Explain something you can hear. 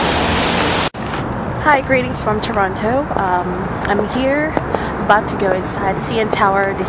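A young woman talks with animation close to the microphone.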